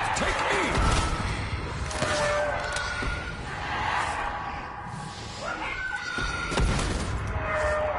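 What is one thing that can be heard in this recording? Explosions boom with a fiery roar.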